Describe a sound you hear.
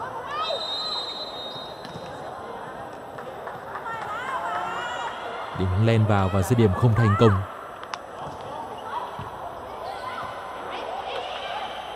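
A crowd cheers and chatters in a large echoing arena.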